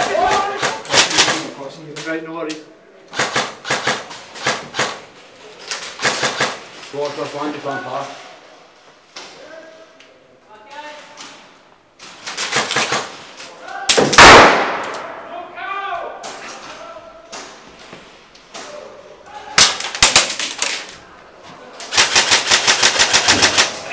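Airsoft guns fire rapid bursts of sharp cracks.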